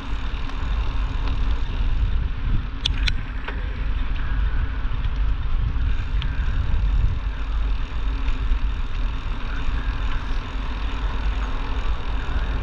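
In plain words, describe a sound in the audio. Bicycle tyres crunch steadily over a gravel path.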